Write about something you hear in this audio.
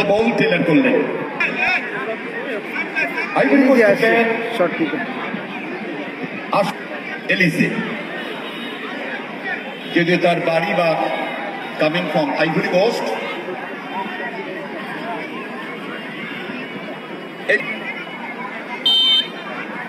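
A large crowd murmurs and chatters outdoors throughout.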